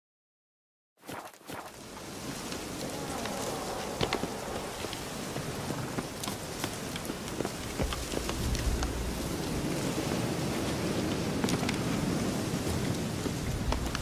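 Footsteps crunch on forest ground.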